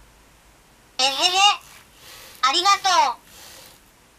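A small robot speaks in a high, childlike synthetic voice, close by.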